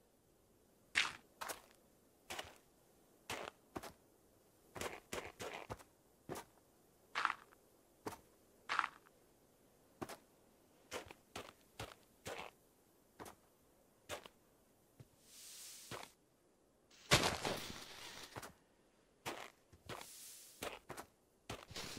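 Blocks of dirt and snow crunch as they are dug out, in short bursts.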